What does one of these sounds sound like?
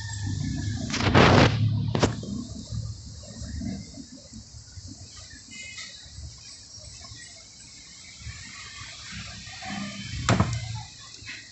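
A plastic bowl knocks and scrapes.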